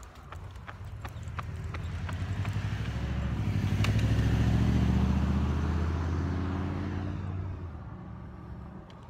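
A pickup truck drives past with a low rumble that swells and fades.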